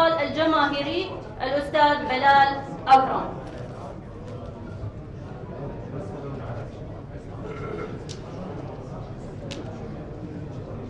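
A crowd murmurs quietly in a large hall.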